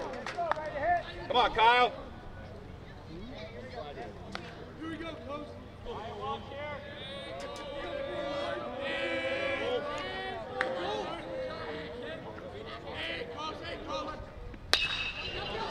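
Voices of players and spectators chatter and call out outdoors.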